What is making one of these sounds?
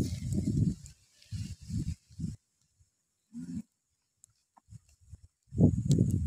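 A wood fire crackles and pops.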